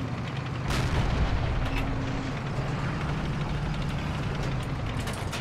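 Tank tracks clank over rough ground.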